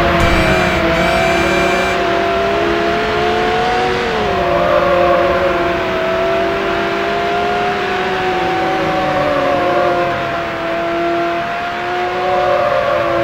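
A sports car engine roars at high speed, its pitch rising and dipping.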